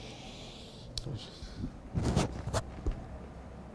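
A middle-aged man sobs and sniffles.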